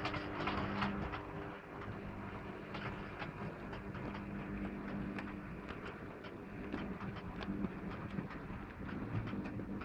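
Small wheels clatter and click over rail joints as a model train rolls past.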